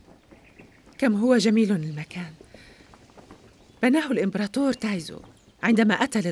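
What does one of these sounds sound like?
A woman speaks loudly and emotionally, close by.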